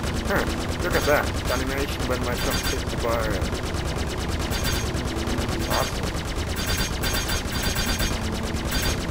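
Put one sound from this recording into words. Laser cannons fire in rapid repeated bursts.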